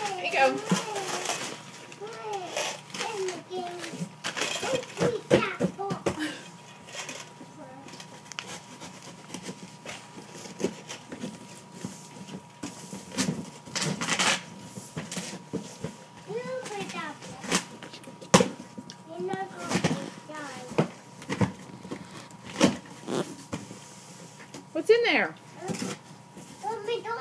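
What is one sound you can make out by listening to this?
Cardboard rustles and thumps as a box is opened.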